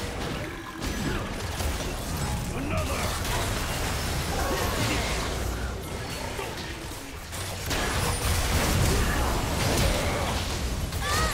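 Magic blasts and combat effects crackle and whoosh in a fast battle.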